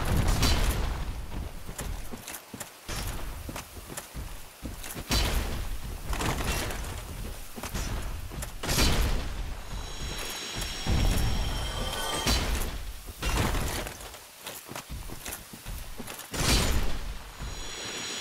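A sword clangs against crystal in sharp hits.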